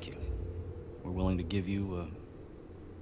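A man says thanks in a gruff voice, close by.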